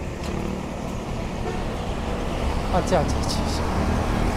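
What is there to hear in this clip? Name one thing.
A truck engine drones as the truck drives by.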